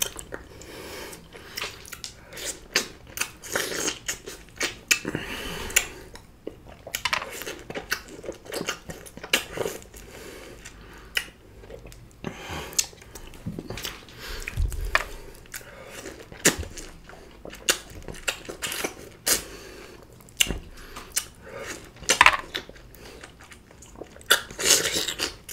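A man sucks and slurps juice from lime wedges up close.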